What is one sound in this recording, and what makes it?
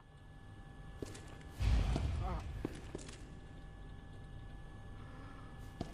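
Footsteps tread across a hard floor.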